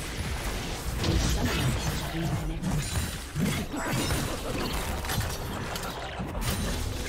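Magic spells whoosh and crackle during a fast battle.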